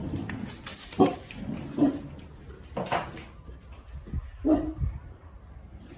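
Dogs bark loudly outdoors.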